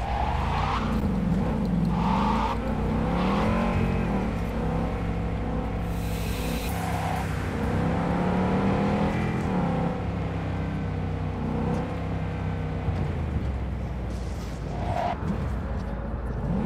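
Car tyres screech while skidding around corners.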